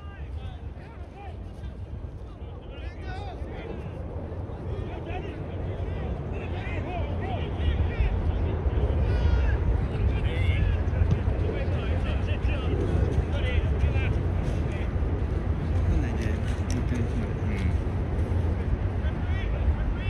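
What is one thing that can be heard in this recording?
Players shout and call out to each other across an open pitch, far off.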